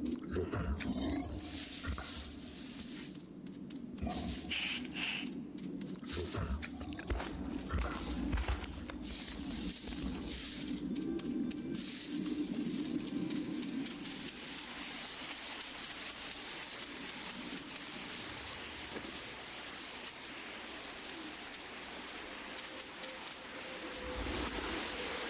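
Small footsteps patter quickly over the ground.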